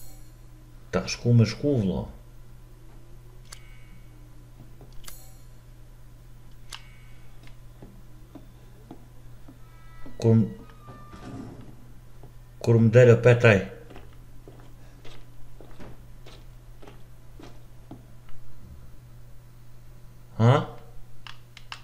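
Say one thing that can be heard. A man speaks briefly and calmly into a close microphone, in short bursts.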